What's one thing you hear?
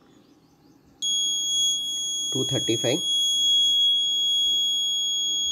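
An electronic buzzer sounds a loud, steady, high beep.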